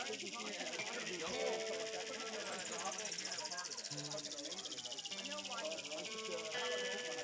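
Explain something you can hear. A stringed instrument is plucked and scraped with sustained, wavering tones.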